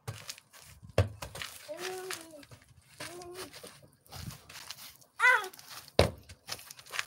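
A ball thumps as it is kicked on the grass.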